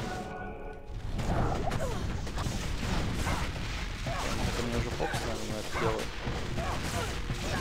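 Lightning spells crackle and zap.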